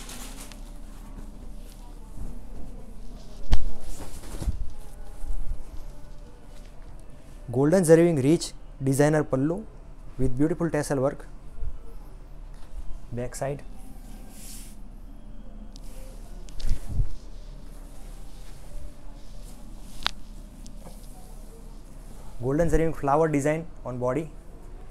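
Silk fabric rustles and swishes as it is unfolded and spread out.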